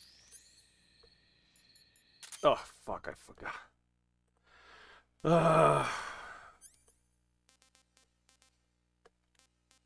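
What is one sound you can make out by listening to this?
Short electronic menu beeps and clicks sound in quick succession.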